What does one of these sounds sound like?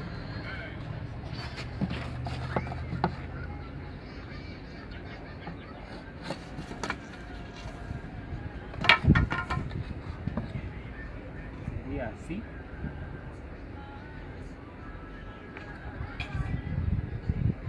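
A plastic pipe knocks and scrapes against a wooden table.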